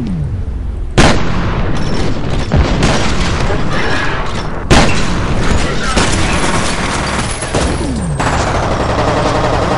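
Bullets strike and ricochet off hard surfaces.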